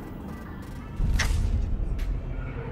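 A game menu opens with a soft whoosh.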